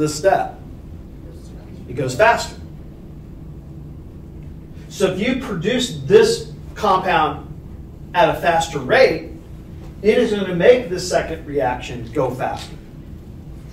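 A man lectures, speaking calmly with pauses.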